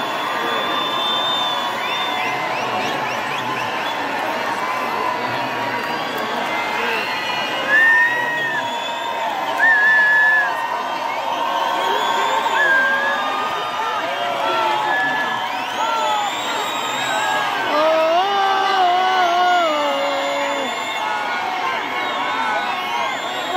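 Fans cheer and scream with excitement.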